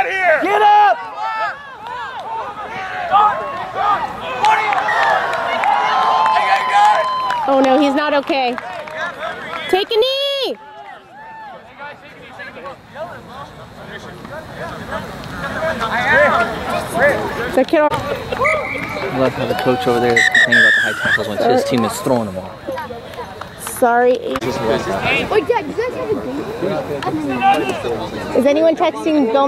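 A crowd of young men shout and cheer outdoors.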